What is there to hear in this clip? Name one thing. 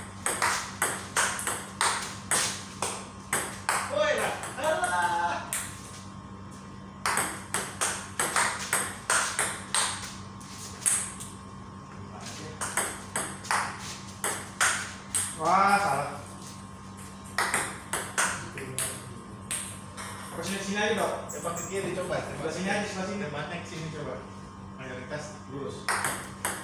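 A ping-pong ball clicks back and forth between paddles and bounces on a table.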